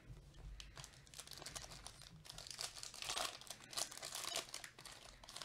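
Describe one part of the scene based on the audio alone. A plastic foil wrapper crinkles and tears as gloved hands open it.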